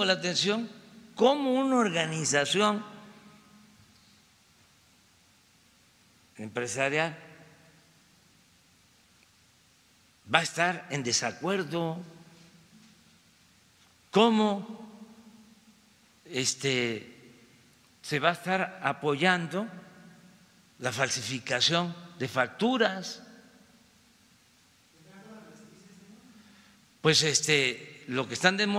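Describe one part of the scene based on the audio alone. An elderly man speaks calmly through a microphone, in short phrases with pauses.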